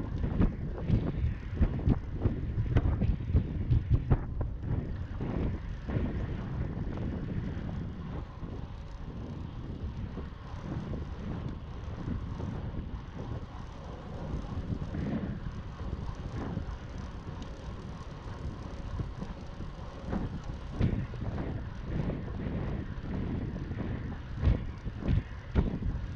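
Wind rumbles and buffets loudly, outdoors.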